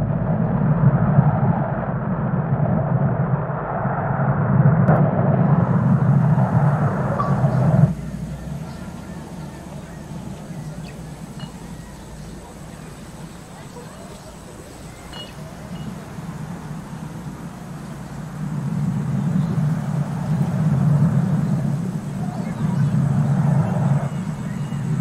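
A glass bowl of water rolls across a hard surface with a low rumble.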